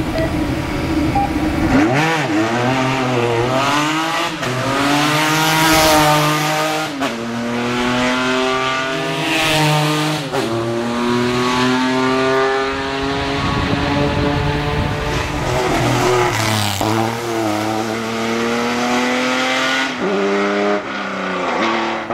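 A racing car engine roars loudly, revving up and down as gears change.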